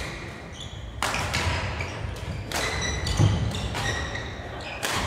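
Badminton rackets strike a shuttlecock with sharp smacks in a large echoing hall.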